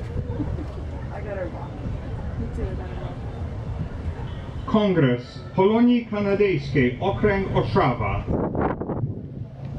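A crowd murmurs quietly outdoors.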